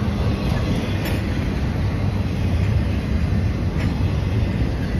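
Train wheels clack sharply over the rails.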